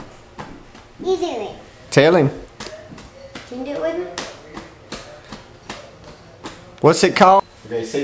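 A young boy talks in a high, excited voice close by.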